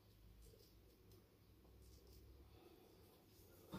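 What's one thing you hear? A razor scrapes softly over stubble.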